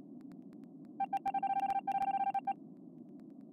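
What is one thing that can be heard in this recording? A game plays an electronic ejection tone.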